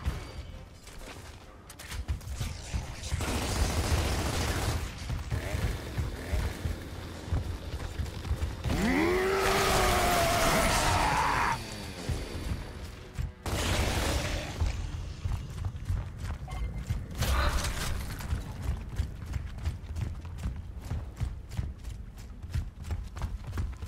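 Heavy armored footsteps thud quickly on stone.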